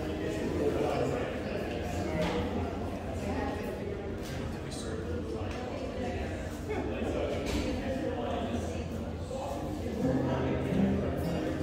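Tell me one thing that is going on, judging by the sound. A man sings into a microphone through a loudspeaker.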